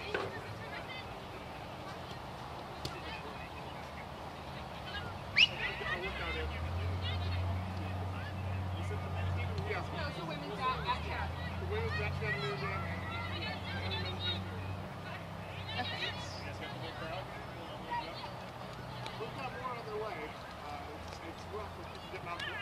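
Young women shout and call to each other far off across an open field.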